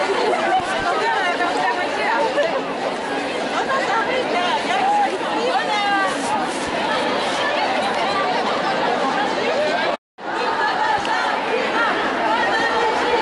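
A large crowd of marchers chatters and calls out loudly outdoors.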